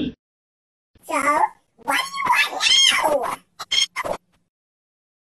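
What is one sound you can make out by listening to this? A man with a squeaky, high-pitched voice talks quickly.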